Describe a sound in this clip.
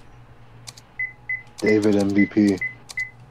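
Short electronic menu beeps chime one after another.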